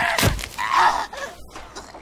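A pickaxe strikes a body with a heavy, wet thud.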